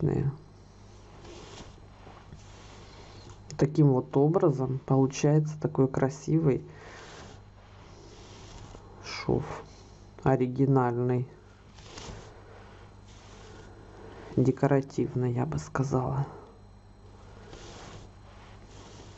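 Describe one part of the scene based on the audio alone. Yarn rustles softly as it is pulled through knitted fabric.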